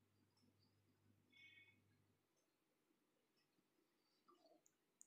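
Water bubbles and simmers softly in a pot.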